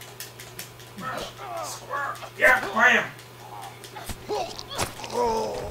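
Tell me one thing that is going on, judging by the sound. A young girl screams and struggles.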